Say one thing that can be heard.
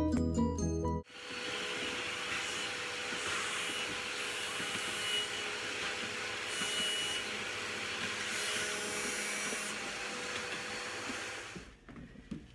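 A cloth scrubs and wipes inside a refrigerator.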